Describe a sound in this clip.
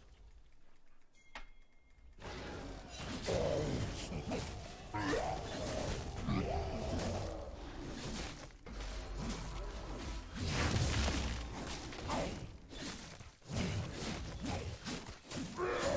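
Fighting sounds from a video game clash and thud.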